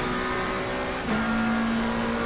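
A racing car engine drops briefly in pitch as it shifts up a gear.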